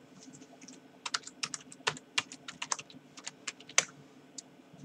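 Fingers type quickly on a keyboard with light clicking.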